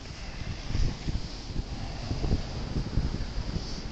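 A car drives past slowly on a snowy road.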